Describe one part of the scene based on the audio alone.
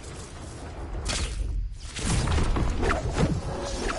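A lightning strike crackles and booms.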